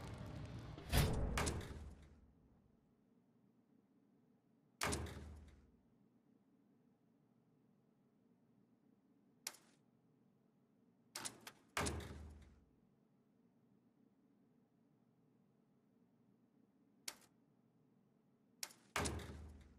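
Menu clicks and chimes sound sharply now and then.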